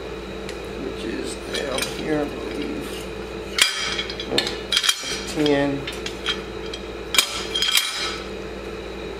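Metal engine parts clink and rattle close by.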